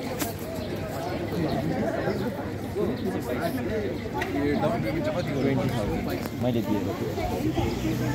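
Footsteps tap on a paved street.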